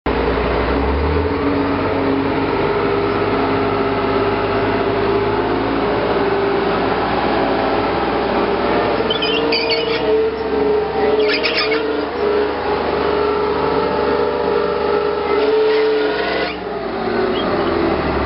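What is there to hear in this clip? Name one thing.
A tank engine roars loudly close by.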